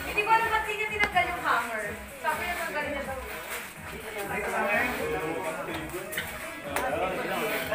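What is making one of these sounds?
A group of adults talk and chatter nearby in a lively way.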